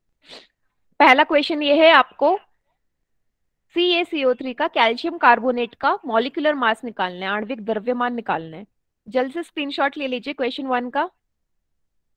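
A young woman speaks with animation through a headset microphone, as on an online call.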